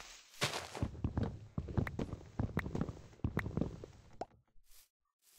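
Wood is struck with quick, repeated knocks.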